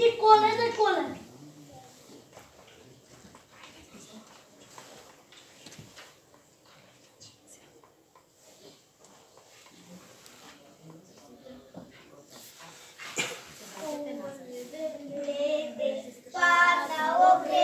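A group of young children sing together loudly.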